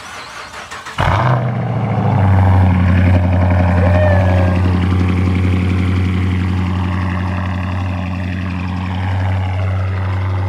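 A car engine starts with a loud roar and then rumbles at a deep, steady idle close by.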